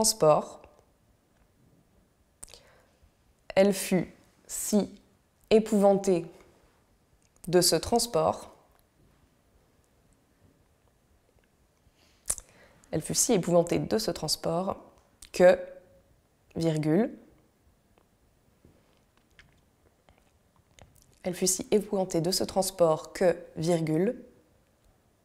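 A young woman speaks slowly and clearly into a microphone, pausing between phrases.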